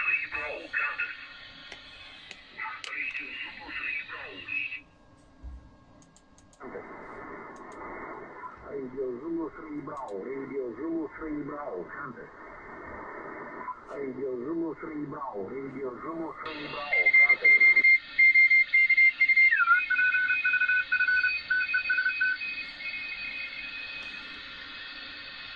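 A radio receiver plays crackly, tinny sound through a loudspeaker.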